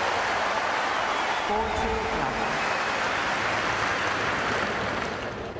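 A large crowd murmurs steadily.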